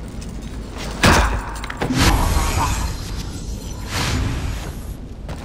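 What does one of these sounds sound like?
A heavy wooden trap swings past with a whoosh.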